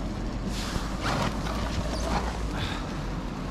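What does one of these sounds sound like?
A young man talks briefly, close by.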